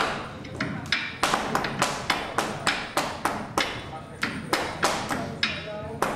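Feet stamp and tap rhythmically on a hard floor.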